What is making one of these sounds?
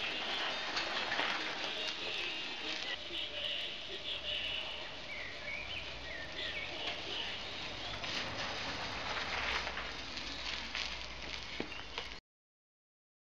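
A bicycle rolls over a gravel path, tyres crunching.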